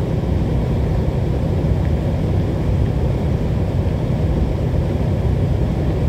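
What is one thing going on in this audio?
Tyres roll on a wet road with a constant low rumble.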